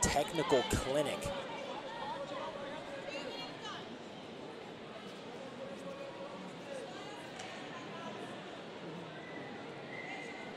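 A crowd murmurs in a large echoing hall.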